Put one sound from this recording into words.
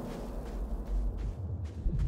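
Small footsteps run quickly across a hard floor.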